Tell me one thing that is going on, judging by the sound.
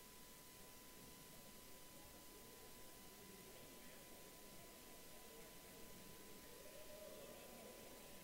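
A small crowd murmurs faintly in a large echoing hall.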